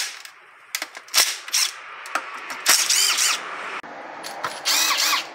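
A cordless tool clatters and scrapes against metal parts.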